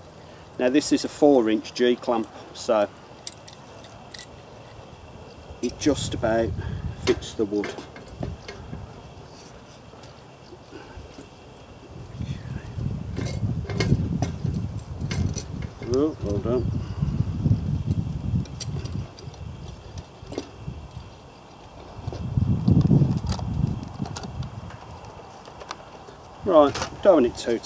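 A man speaks calmly outdoors.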